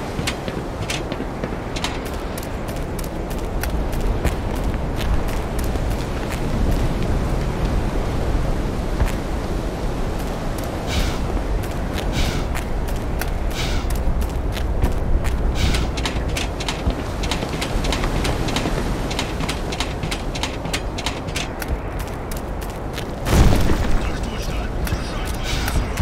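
Footsteps clank on a metal grating.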